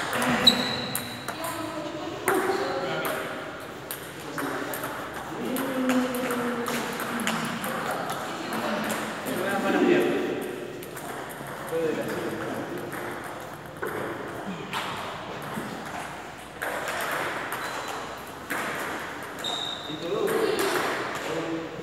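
Men talk casually nearby in an echoing hall.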